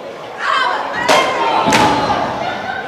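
A wrestler slaps another wrestler's chest with loud smacks.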